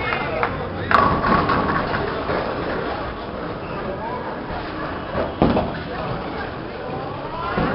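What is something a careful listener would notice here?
A crowd of adults chatters in a noisy, echoing hall.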